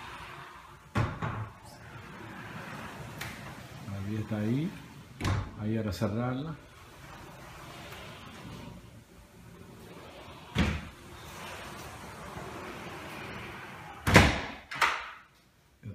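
Glass doors bang shut against their frames.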